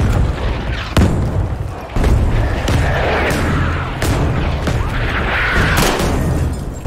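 A rifle fires sharp shots up close.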